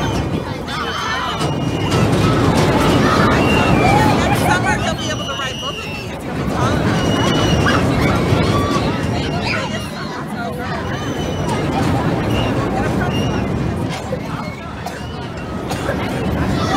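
A roller coaster train rumbles and clatters loudly along its track nearby.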